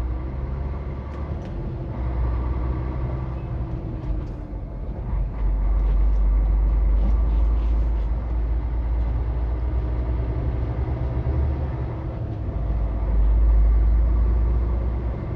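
A vehicle engine rumbles steadily from inside while driving.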